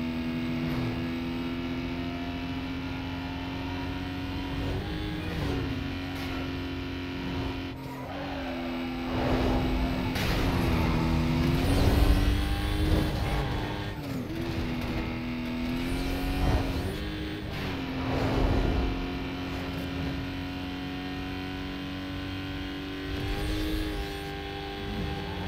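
A racing car engine roars at high speed, its pitch dipping briefly with each gear change.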